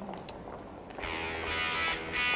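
An electric guitar plays loudly through an amplifier.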